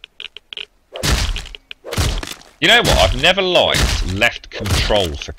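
A hatchet chops into an animal carcass with heavy, wet thuds.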